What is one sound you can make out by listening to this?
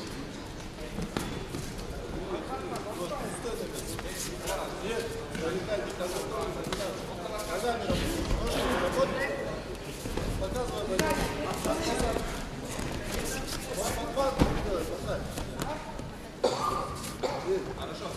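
A crowd shouts and cheers in an echoing arena.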